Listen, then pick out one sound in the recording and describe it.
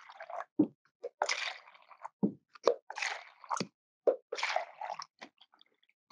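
Water pours and splashes into a plastic cup.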